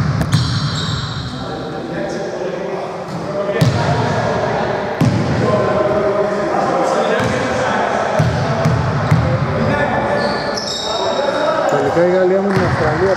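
Young men talk and call out across an echoing hall.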